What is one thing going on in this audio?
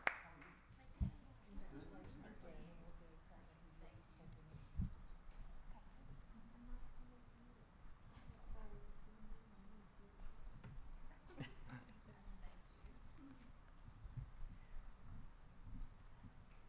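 Adults murmur and chat quietly nearby.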